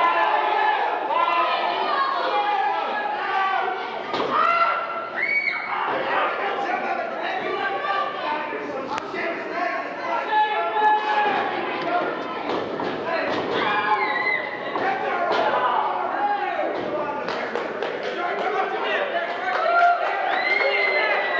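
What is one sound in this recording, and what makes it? A crowd of people cheer and shout in an echoing hall.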